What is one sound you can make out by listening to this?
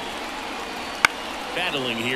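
A pitched ball smacks sharply into a catcher's mitt.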